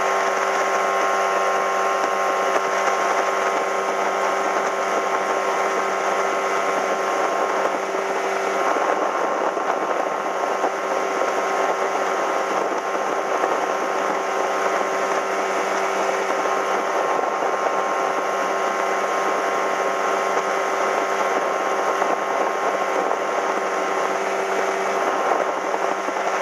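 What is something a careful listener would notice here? Wind buffets loudly across the water.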